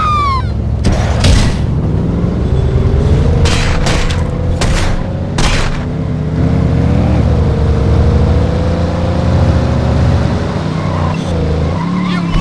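A car engine hums steadily and slowly rises in pitch.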